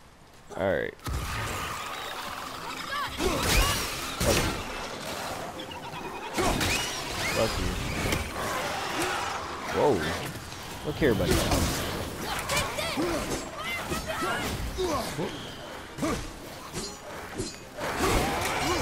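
Heavy blows thud and clang in a fight.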